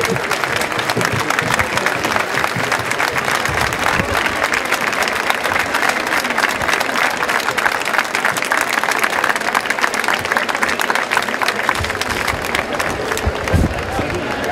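A large crowd applauds loudly outdoors.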